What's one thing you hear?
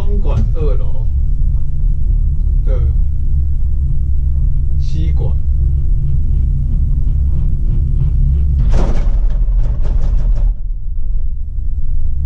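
A gondola cabin hums and rumbles steadily as it rides along the cable.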